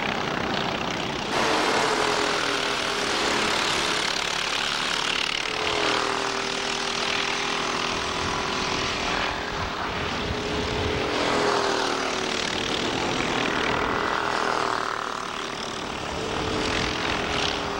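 Kart engines whine loudly at high revs, rising and falling as they race past.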